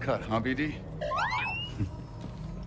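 A small robot beeps with a rising chirp.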